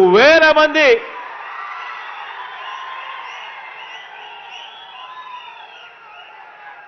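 A large crowd cheers and shouts in the distance.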